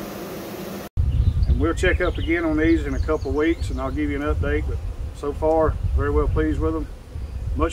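A man speaks calmly, close by, outdoors.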